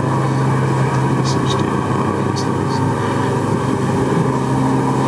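A young man speaks calmly into a microphone through loudspeakers outdoors.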